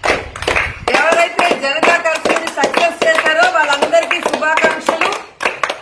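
A woman chants loudly close by.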